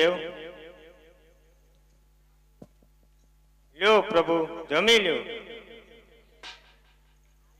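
A woman sings loudly through a loudspeaker, in bursts.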